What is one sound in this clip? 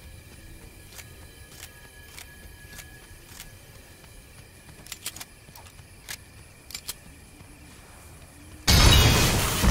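Footsteps tap quickly on the ground.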